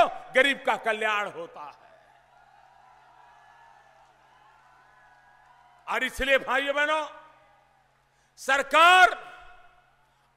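A large crowd of men chants a slogan in loud, short bursts outdoors.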